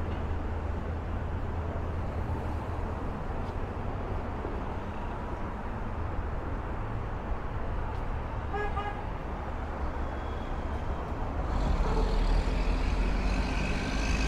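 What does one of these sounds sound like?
Traffic hums steadily in the distance outdoors.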